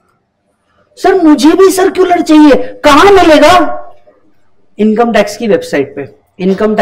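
A man speaks calmly and clearly into a microphone, explaining.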